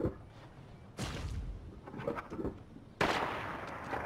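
A plastic toilet door opens and bangs shut.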